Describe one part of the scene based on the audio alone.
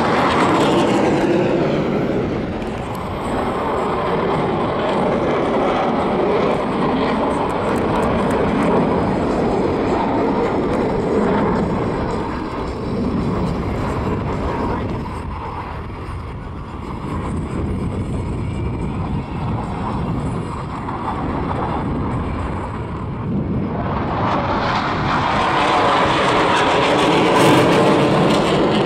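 A jet engine roars overhead, rising and falling as the aircraft passes.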